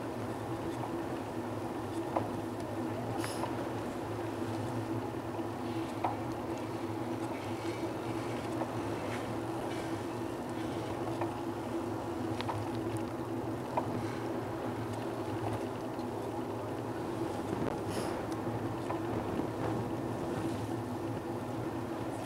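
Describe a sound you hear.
Footsteps tap steadily on a paved path outdoors.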